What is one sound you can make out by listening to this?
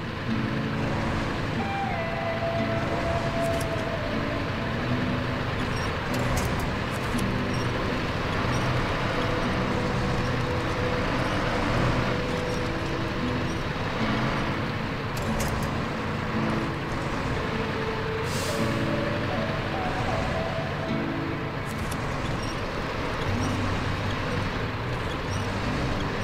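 A truck engine strains as the truck climbs slowly over rocks.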